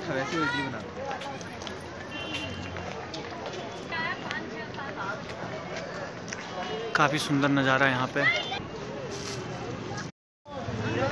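Men and women chatter and call out nearby outdoors.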